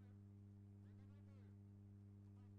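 A man speaks calmly, heard faintly through a microphone.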